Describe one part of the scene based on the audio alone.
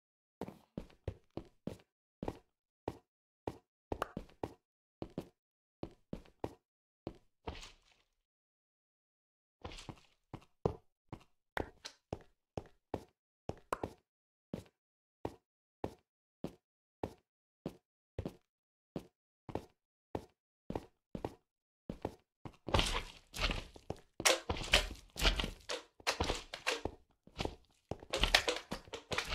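Footsteps tap steadily on hard blocks.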